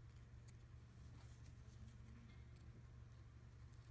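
Scissors snip a thread close by.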